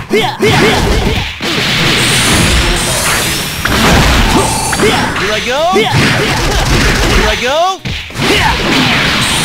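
Punches and blasts hit in rapid succession in a fighting game.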